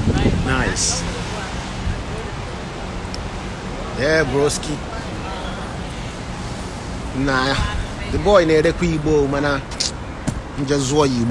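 A man speaks in short bursts close to the microphone.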